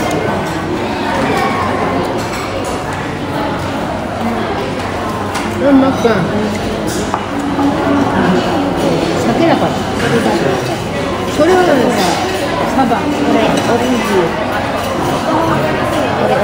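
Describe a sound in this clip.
Chopsticks and dishes clink on a table.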